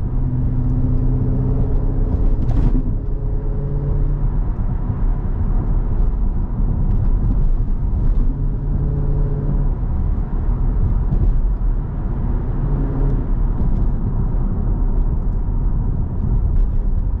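Tyres roll on pavement with steady road noise.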